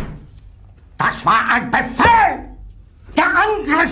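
A man shouts angrily at close range.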